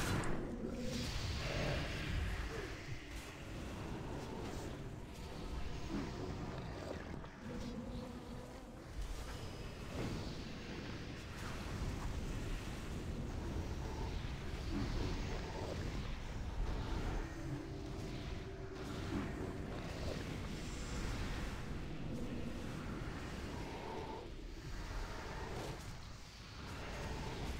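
Game spell effects whoosh and crackle throughout.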